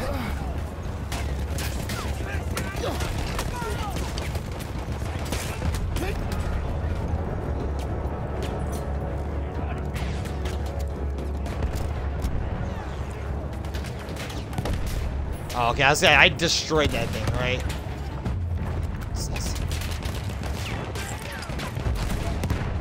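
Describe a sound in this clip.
Gunshots crack now and then.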